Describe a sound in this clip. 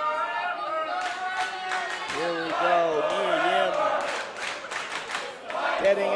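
A crowd chants and cheers loudly in a large echoing hall.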